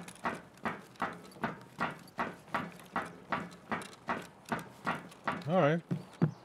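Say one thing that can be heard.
Footsteps thud in a steady rhythm.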